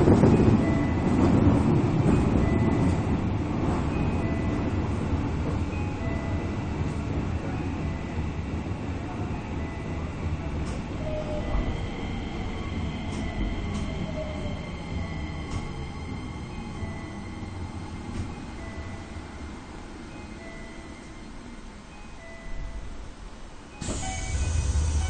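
A train rumbles along the tracks and slowly quietens as it slows down.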